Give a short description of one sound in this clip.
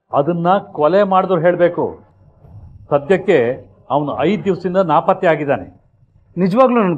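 A middle-aged man speaks firmly and sternly.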